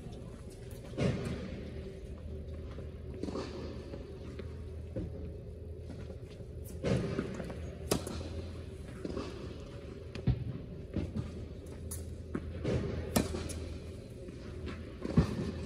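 A tennis ball is struck with a racket, with a sharp pop echoing in a large hall.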